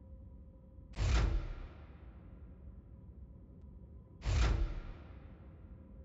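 A heavy metallic clunk rings out and fades.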